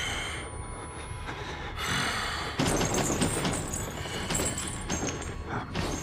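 Heavy footsteps walk past close by on a hard floor.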